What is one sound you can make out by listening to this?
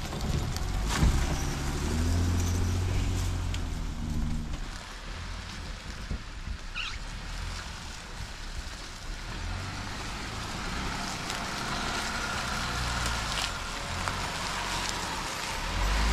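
An off-road vehicle's engine rumbles and revs as it crawls over rough ground.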